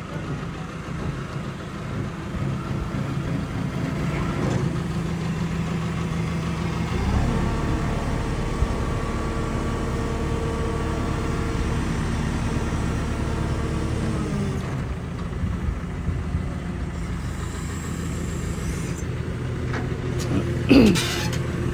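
A diesel engine rumbles steadily nearby.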